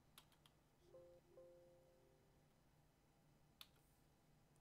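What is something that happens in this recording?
A mouse clicks close by.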